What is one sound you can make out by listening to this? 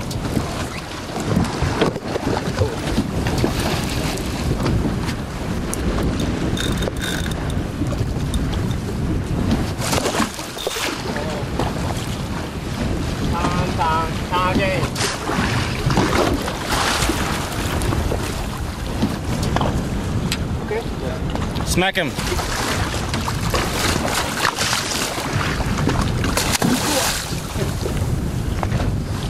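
Waves slap against the side of a boat.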